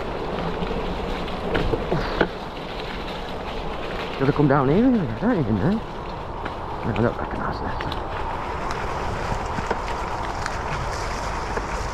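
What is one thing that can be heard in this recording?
Wind buffets and rumbles.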